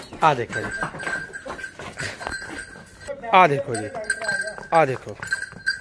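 Hooves clop on a brick floor.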